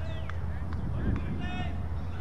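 A bat strikes a cricket ball with a sharp knock.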